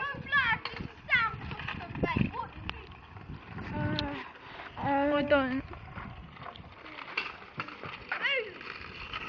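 Scooter wheels rumble over rough tarmac.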